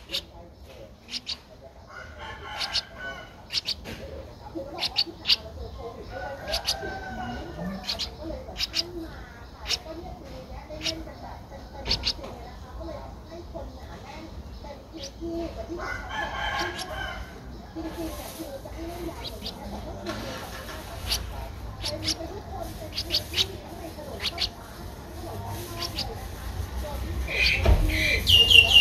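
Baby birds cheep in short, shrill bursts close by.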